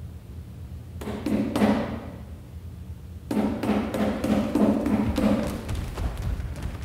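Feet shuffle and thud on a wooden stage.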